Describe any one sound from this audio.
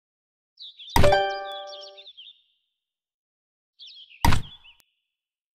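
A game tile clacks down onto a wooden table with a short chime.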